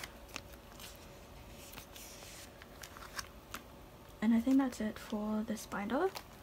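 Plastic sleeves rustle and crinkle under fingers.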